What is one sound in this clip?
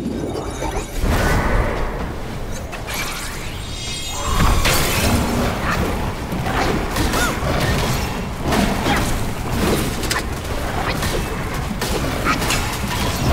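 Heavy blows and impacts crash and boom.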